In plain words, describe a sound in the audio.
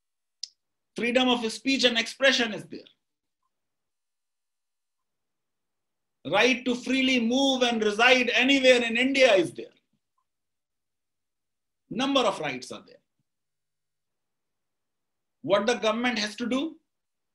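A middle-aged man speaks calmly through an online call, pausing between phrases.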